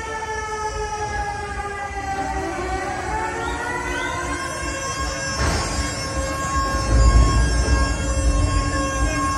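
Electronic dance music with a heavy thumping bass plays loudly through speakers in a large echoing hall.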